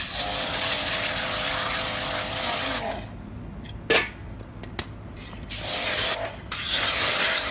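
A pressure washer sprays a hissing jet of water onto a hard surface.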